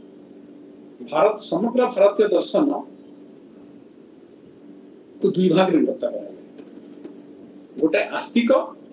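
An elderly man speaks calmly over an online call, in bursts with pauses.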